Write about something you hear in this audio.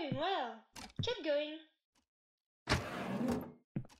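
A sliding door whooshes open.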